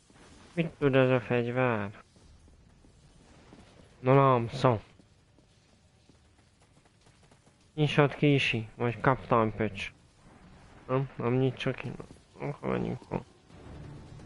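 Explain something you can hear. A man talks animatedly close to a microphone.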